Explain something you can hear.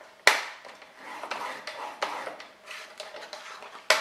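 A paper trimmer blade slides along with a scraping sound.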